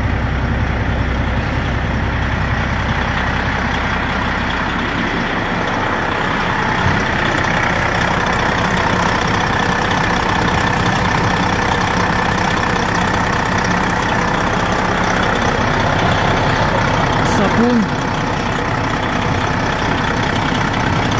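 A diesel engine idles with a loud, steady rumble.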